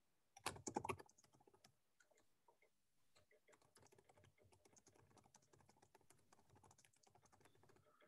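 Keys clatter as someone types on a keyboard.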